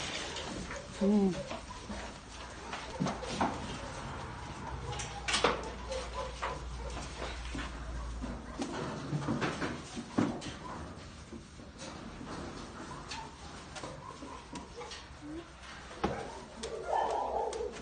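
A middle-aged woman talks softly and affectionately close by.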